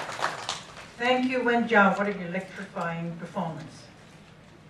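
A woman speaks calmly into a microphone, heard through loudspeakers in a large room.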